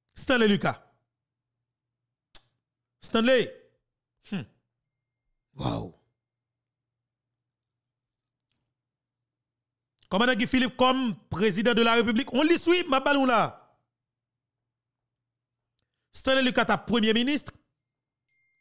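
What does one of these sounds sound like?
A young man speaks with animation, close to a microphone, with long pauses.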